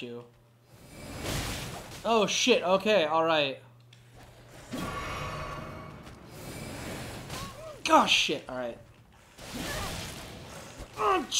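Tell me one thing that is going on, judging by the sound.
A magic blast whooshes and booms.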